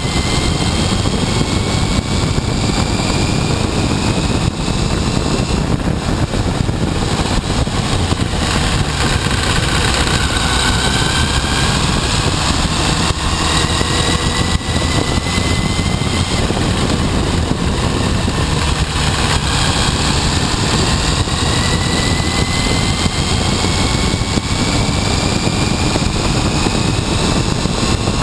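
The engine of a motorcycle whines, rising in pitch as it speeds up.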